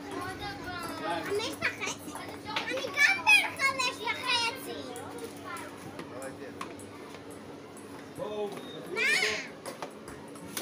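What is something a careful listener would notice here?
A young child shouts excitedly.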